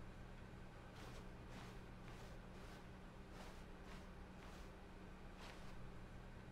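Footsteps tread softly along a floor.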